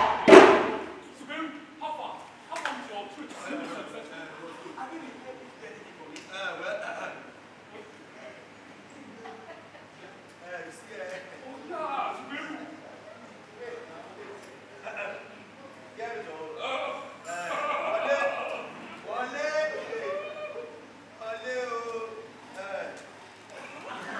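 Young men speak with animation on a stage, heard through a microphone.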